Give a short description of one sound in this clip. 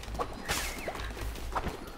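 A sharp magical zap strikes a small creature.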